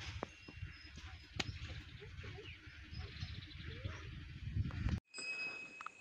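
A calf munches dry straw.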